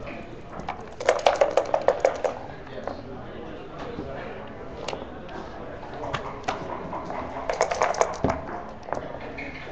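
Dice rattle in a cup and tumble across a board.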